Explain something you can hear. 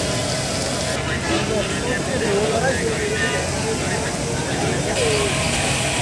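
A crowd of men talks outdoors.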